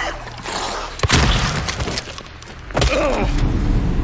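A pistol fires loudly.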